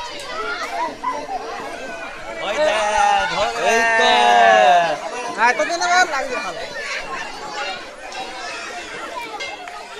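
A crowd of children and adults chatters and shouts nearby outdoors.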